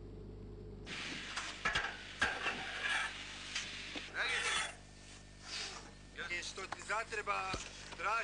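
Metal clanks and knocks sharply.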